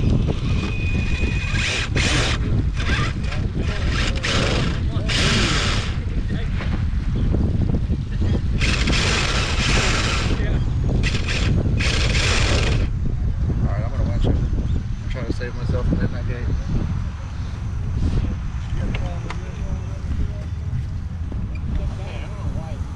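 A small electric motor whirs as a toy truck crawls over rocks.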